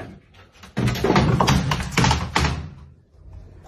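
A cat scrambles and thumps against a hollow plastic bin, rattling it loudly.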